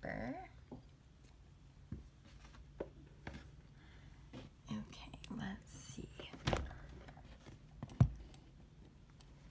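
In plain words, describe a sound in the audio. A hand taps and rubs lightly against a hard surface, close by.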